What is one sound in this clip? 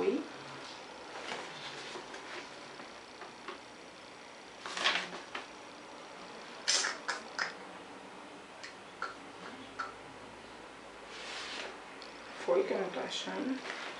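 Paper rustles as a letter is unfolded.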